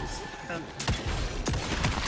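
A magic blast whooshes and bursts.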